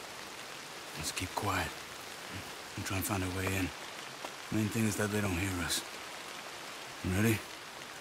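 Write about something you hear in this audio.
A man speaks quietly in a low voice, close by.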